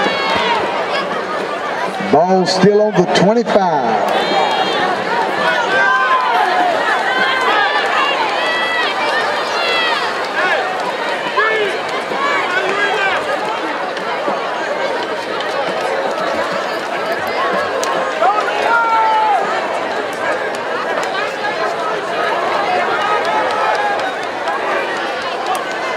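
A large outdoor crowd of spectators chatters and cheers.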